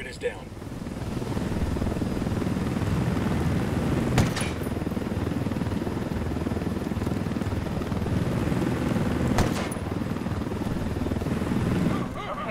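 A helicopter rumbles overhead.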